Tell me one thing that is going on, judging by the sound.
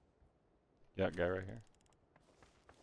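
A man speaks briefly into a microphone.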